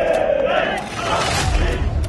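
A group of men shout loudly in unison.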